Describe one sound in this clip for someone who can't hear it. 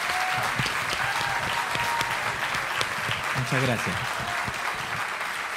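A man claps his hands rhythmically.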